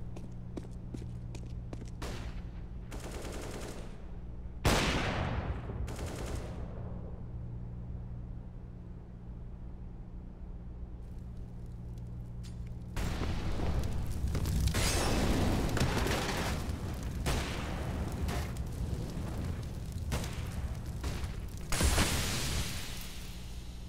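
Footsteps tread on hard stone ground.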